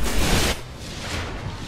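A loud blast bursts and rumbles.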